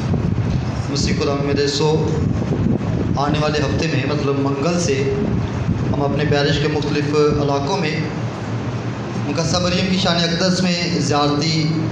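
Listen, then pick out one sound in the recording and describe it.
A man speaks steadily into a microphone, heard over a loudspeaker in a room that echoes.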